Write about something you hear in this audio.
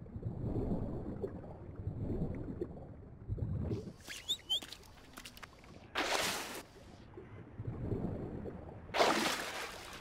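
Footsteps crunch over soft forest ground.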